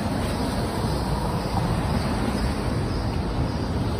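A car drives past close by on a wet road.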